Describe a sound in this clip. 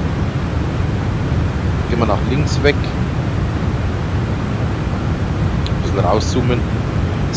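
A jet's engines drone with a steady low rumble.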